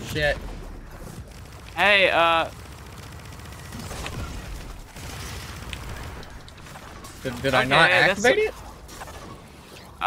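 Bursts of sparks crackle and fizz.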